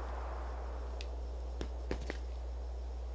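Light footsteps tap on a hard floor.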